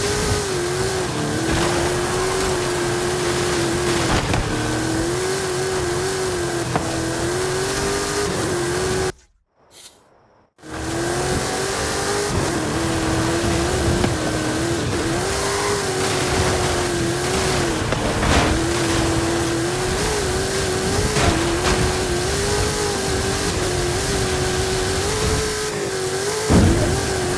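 A racing car engine roars at high speed, its pitch wavering as it shifts.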